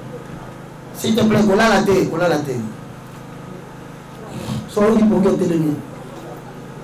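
A man speaks loudly into a microphone in short bursts.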